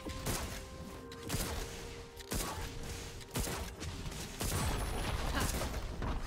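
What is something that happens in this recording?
Game spell effects crackle and burst in quick bursts during a fight.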